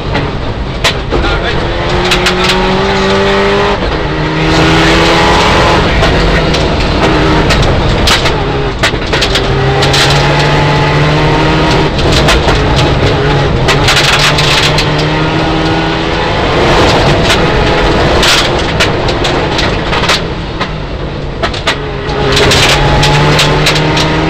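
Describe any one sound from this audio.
A rally car engine roars loudly inside the cabin, rising and falling as gears change.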